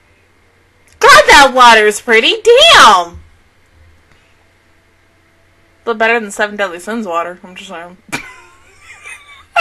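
A young woman laughs into a close microphone.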